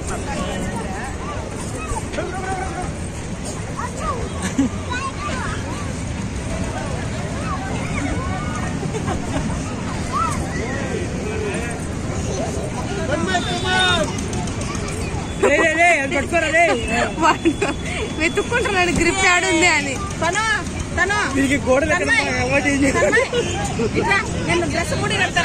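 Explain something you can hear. Young children shout and chatter excitedly close by.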